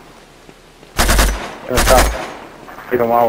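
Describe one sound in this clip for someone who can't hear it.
A rifle fires two loud, booming shots.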